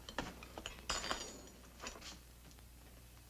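Glasses and dishes clink nearby.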